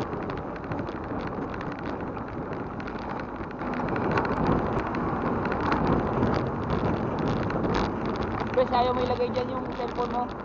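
A bicycle rattles and clicks over the road surface.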